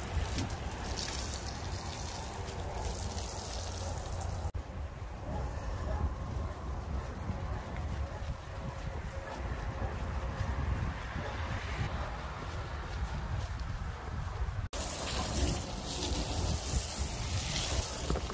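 A garden hose sprays water hard against a car.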